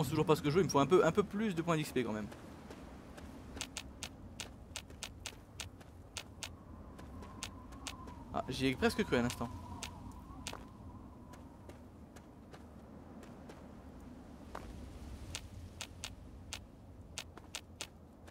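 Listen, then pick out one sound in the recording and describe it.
Footsteps crunch steadily over gravel and dry ground.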